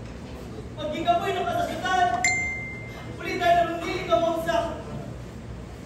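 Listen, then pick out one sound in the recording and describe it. A young man speaks loudly and with feeling, in a room with some echo.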